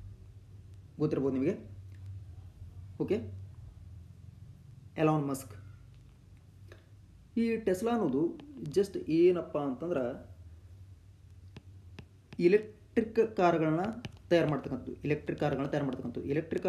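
A young man talks calmly and clearly into a close microphone, pausing between phrases.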